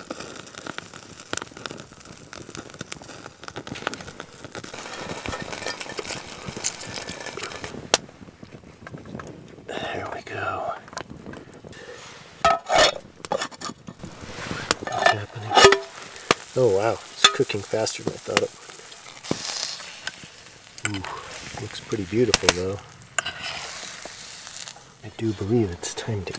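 Wood crackles in a small fire.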